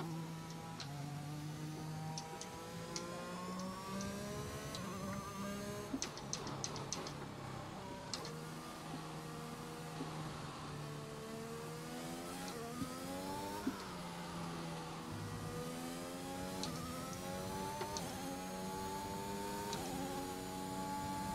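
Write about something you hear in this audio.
A racing car engine revs high, rising and dropping in pitch with quick gear changes.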